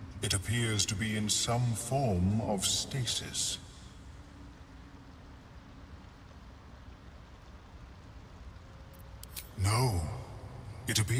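A man speaks calmly in a deep, low voice.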